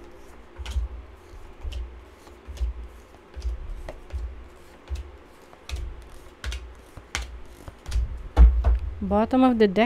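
Cards are laid down one by one on a wooden table with soft taps.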